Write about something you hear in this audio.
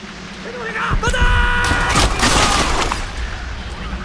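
A rifle fires loud shots at close range.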